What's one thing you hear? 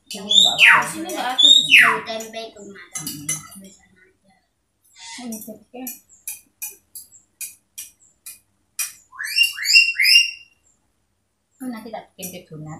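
A young boy talks close by with animation.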